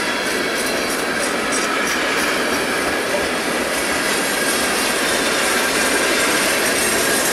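A freight train rumbles and rattles steadily past close by.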